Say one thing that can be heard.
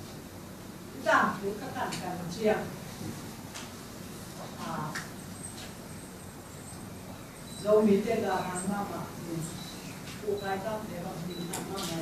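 A middle-aged woman speaks calmly, with pauses.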